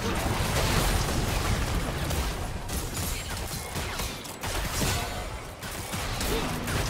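Game spell effects blast and crackle in a busy battle.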